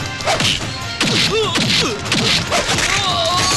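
A man grunts and cries out as he is hit.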